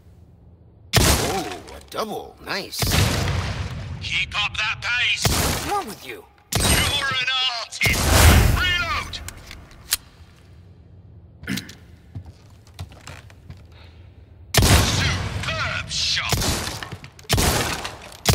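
A pistol fires repeated loud shots that echo.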